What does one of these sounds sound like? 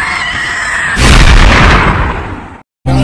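A crowd erupts in a loud roar.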